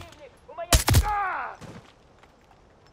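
A rifle fires a single loud shot that echoes off the hills.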